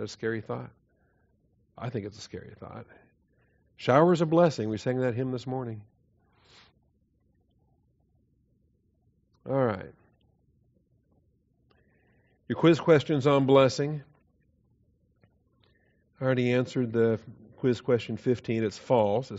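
A man lectures calmly through a microphone, in phrases with pauses.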